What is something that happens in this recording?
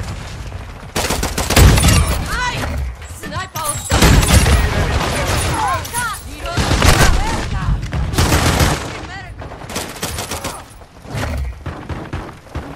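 Loud shotgun blasts boom repeatedly.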